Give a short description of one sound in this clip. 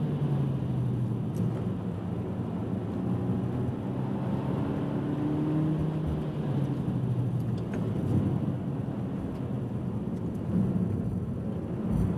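A car engine roars steadily from inside the cabin, its pitch rising and falling as the car speeds around a track.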